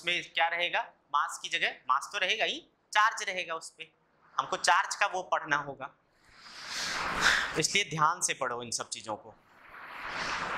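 A young man speaks calmly through a clip-on microphone.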